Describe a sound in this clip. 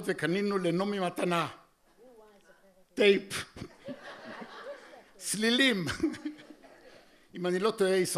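A man reads aloud expressively into a microphone.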